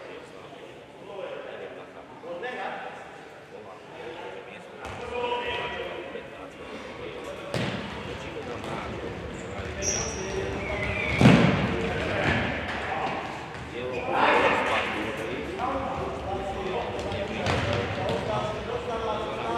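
Men shout and call out across the court.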